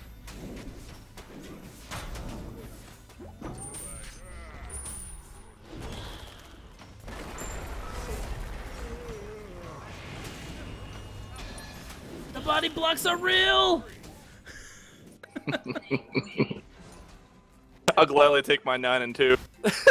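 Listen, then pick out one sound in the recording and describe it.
Magic blasts burst and whoosh in a game fight.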